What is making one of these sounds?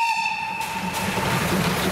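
A steam locomotive whistle blows loudly.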